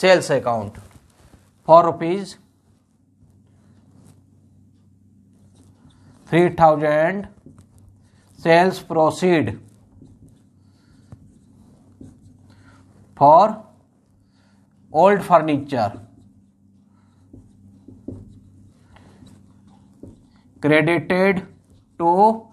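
A man speaks calmly in short phrases, as if explaining.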